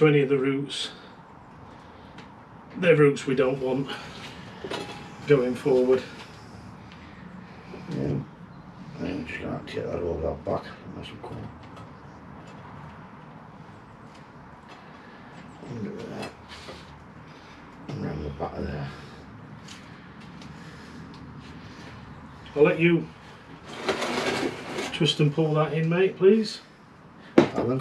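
A middle-aged man talks calmly nearby.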